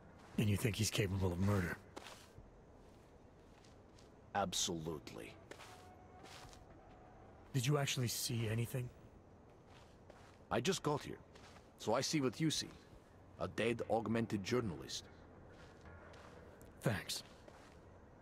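A man speaks in a low, calm, gravelly voice.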